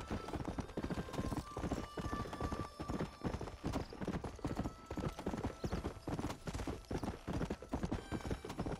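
Horse hooves thud rhythmically on a dirt track at a gallop.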